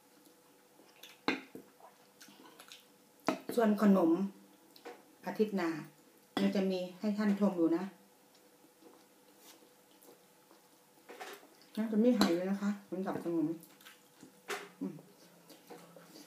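Cutlery clinks and scrapes on a plate.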